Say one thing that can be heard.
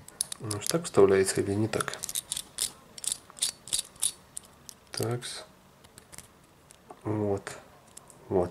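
Small plastic parts click and rustle in hands close by.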